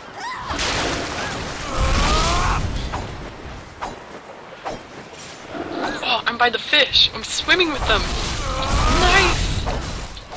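Magic spells burst with a bright whooshing shimmer.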